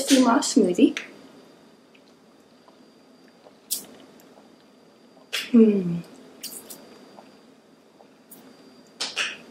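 A young woman sips through a straw with a slurping sound.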